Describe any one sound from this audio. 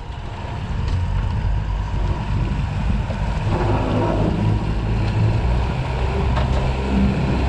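Outboard engines roar steadily.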